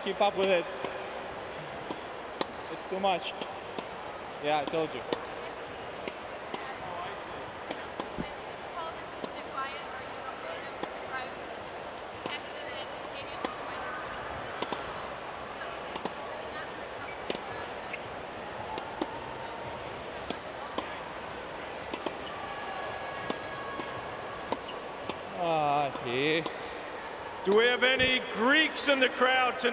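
A large crowd murmurs in a big open arena.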